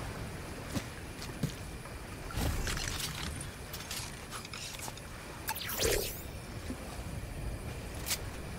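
Footsteps pad softly on sand.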